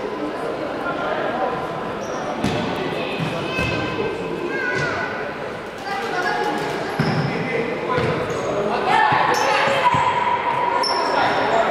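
Young women players call out to each other across a large echoing hall.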